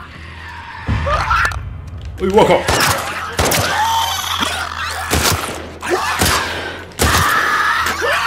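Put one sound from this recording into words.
Gunshots ring out loudly and echo.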